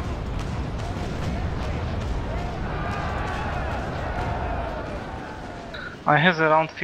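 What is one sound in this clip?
Cannons boom and rumble in a heavy volley.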